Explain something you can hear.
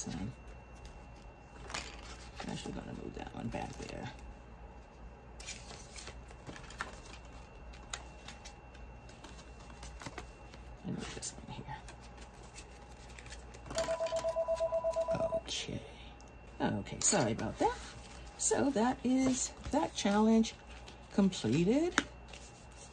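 Plastic and paper pages rustle and crinkle as they are flipped by hand.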